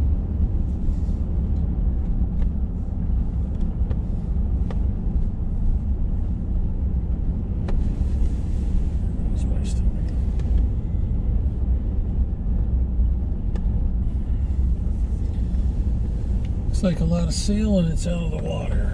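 Tyres rumble and crackle over a rough road.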